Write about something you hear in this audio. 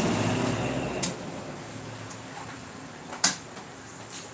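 Metal utensils clink and clatter on a hard surface.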